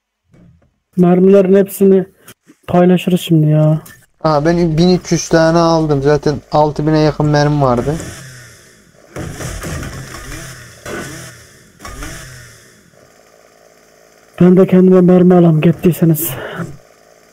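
A chainsaw engine revs loudly in bursts.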